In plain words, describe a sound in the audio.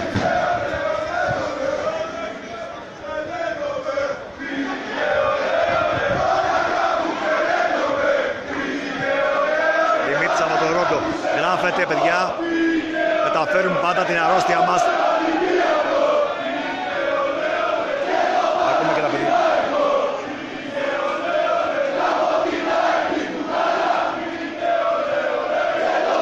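A large crowd of fans chants and sings loudly in an open stadium.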